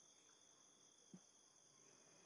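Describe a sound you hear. A wooden chair knocks softly as someone sits down.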